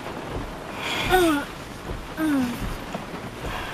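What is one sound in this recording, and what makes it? A young woman sobs quietly nearby.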